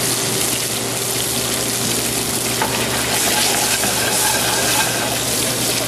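A metal pan scrapes as it is shaken over a burner.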